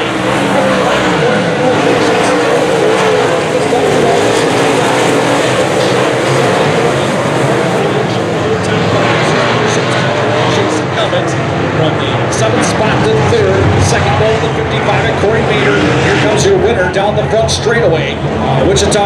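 A crowd of spectators chatters nearby.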